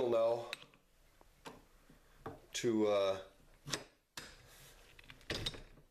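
A metal wrench clinks against a machine's spindle.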